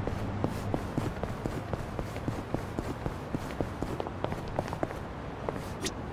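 Quick footsteps run on a hard street.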